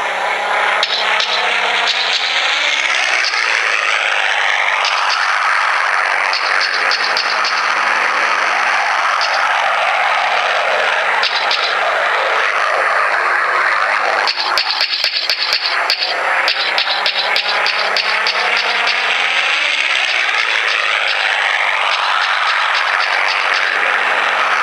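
Anti-aircraft guns fire in rapid bursts in a video game.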